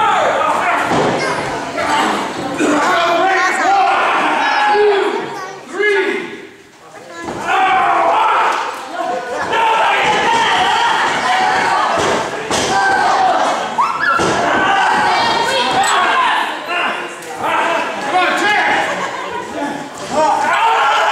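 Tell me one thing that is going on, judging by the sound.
A crowd cheers and shouts in an echoing hall.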